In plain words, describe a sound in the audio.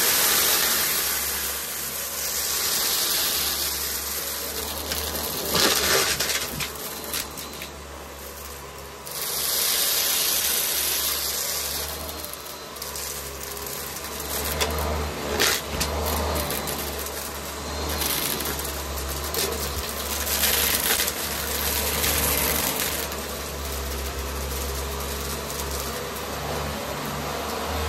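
A vacuum cleaner hums steadily as it runs over a carpet.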